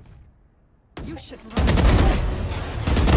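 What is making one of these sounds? A gun fires a burst of loud shots.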